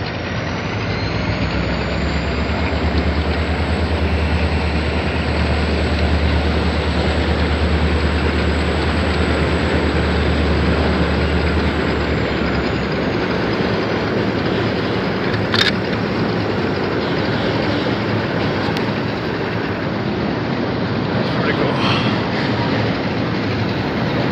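A freight train rumbles and clatters across a bridge in the distance.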